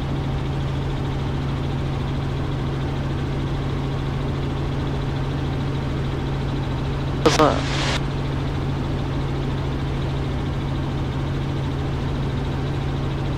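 A helicopter engine and rotor drone steadily and loudly.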